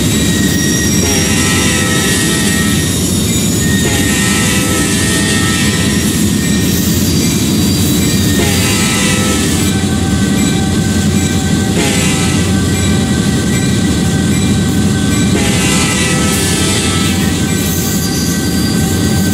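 A locomotive horn blows in repeated long blasts.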